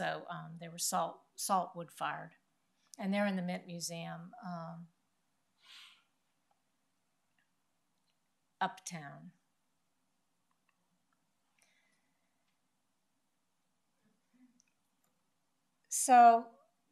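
A woman speaks calmly into a microphone, with long pauses.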